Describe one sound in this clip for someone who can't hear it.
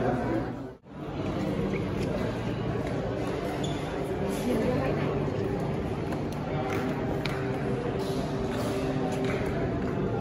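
People murmur and chatter nearby in an echoing indoor space.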